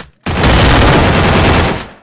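A punch lands with a thud.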